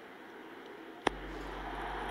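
A bat strikes a cricket ball with a sharp crack.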